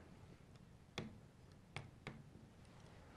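A pen taps on a hard surface.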